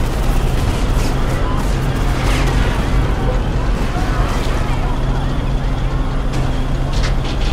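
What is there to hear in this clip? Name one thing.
Heavy tank treads clank and grind on the road.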